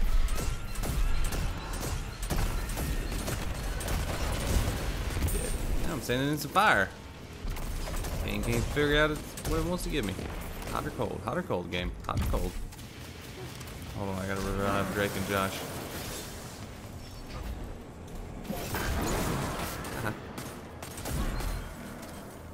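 Gunfire and explosions crackle from a video game.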